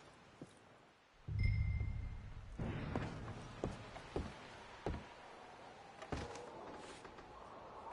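Footsteps thud on wooden boards.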